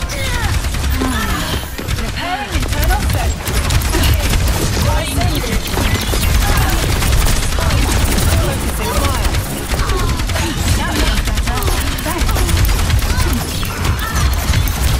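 Explosions and impacts crackle in a busy game battle.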